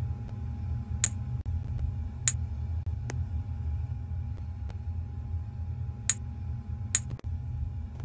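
Short sharp clicks sound as drinks are handed out.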